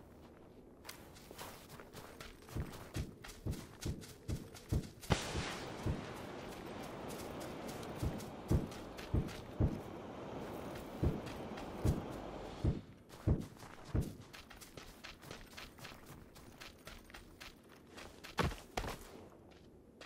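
Quick footsteps thud and crunch over rough ground.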